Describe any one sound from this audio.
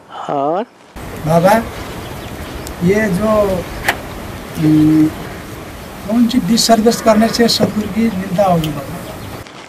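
A middle-aged man speaks outdoors.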